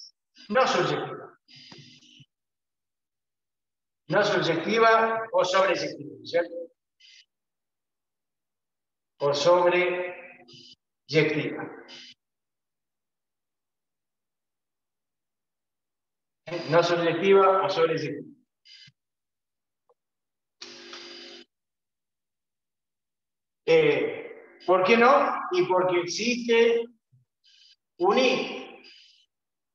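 A middle-aged man speaks calmly in short bursts, explaining, with pauses between.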